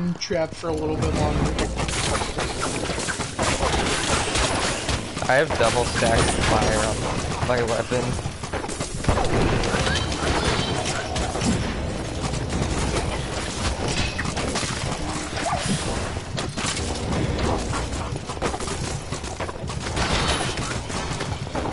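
Video game combat sounds clash and burst rapidly as fighters strike and spells explode.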